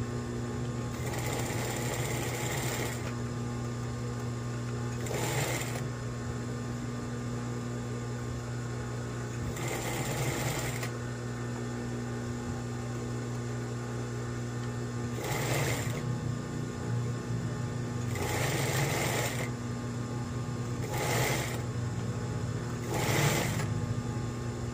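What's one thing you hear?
A sewing machine stitches fast in short bursts.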